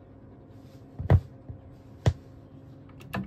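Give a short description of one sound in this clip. A stylus drops onto a record with a dull thump.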